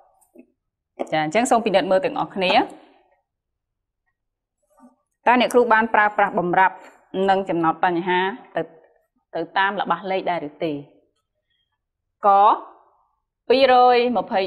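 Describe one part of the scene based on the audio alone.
A young woman speaks clearly and with animation, close by.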